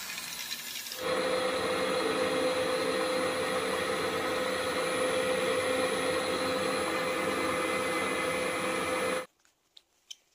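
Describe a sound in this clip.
A drill press whirs as it drills into metal.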